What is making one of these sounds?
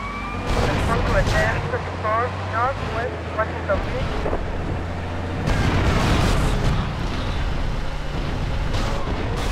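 A tank's tracks clatter over the road.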